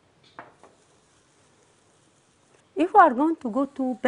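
An eraser rubs on a whiteboard.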